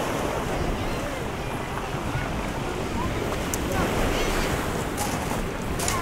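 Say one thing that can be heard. Small waves wash onto a pebble beach.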